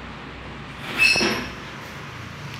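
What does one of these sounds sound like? A dog whimpers briefly.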